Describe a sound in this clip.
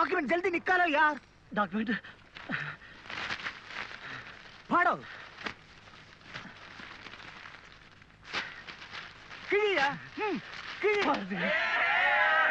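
A man shouts angrily nearby.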